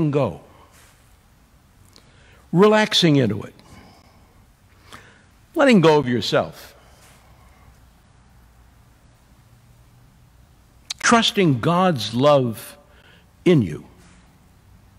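A middle-aged man speaks slowly and deliberately in a large echoing room, with long pauses.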